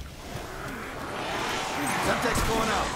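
Zombies growl and groan nearby.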